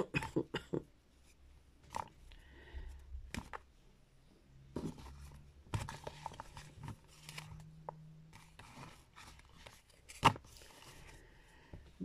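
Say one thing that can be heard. Playing cards tap and slide softly on a table.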